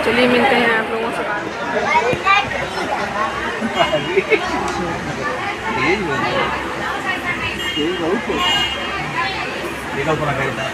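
A man talks playfully with a small boy close by.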